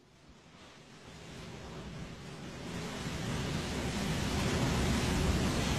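Ocean waves crash and wash onto the shore, growing louder.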